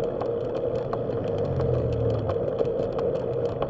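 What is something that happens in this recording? A car passes by in the opposite direction.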